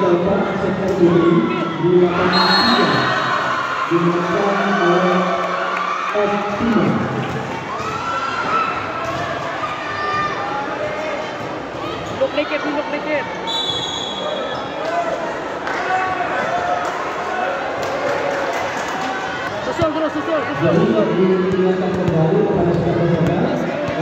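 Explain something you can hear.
A crowd chatters and cheers throughout a large echoing hall.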